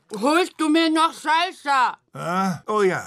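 A woman talks loudly with animation.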